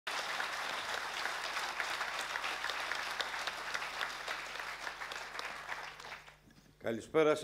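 A large audience applauds in a room.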